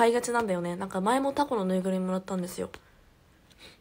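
A young woman speaks animatedly and close to a microphone.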